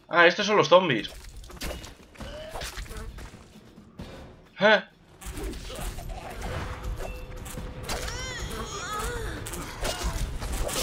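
A blade slashes and strikes with wet, sharp hits.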